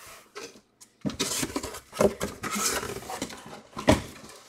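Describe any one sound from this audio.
Cardboard box flaps scrape and rustle as they are handled.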